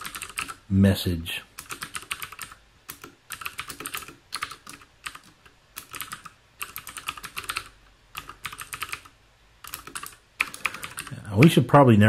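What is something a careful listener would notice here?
Keyboard keys click rapidly as someone types.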